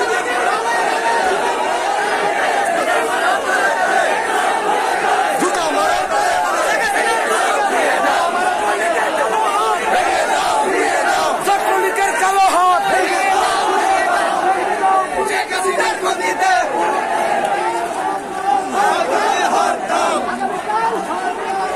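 A large crowd of men chants and shouts loudly outdoors.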